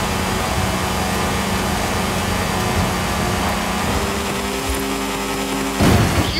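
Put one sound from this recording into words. Tyres rumble and crunch over loose dirt.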